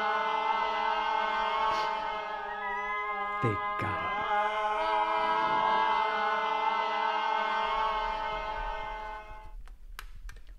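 A puppet sings in a silly, high voice.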